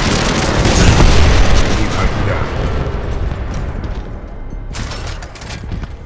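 Heavy mechanical machinery whirs and clanks.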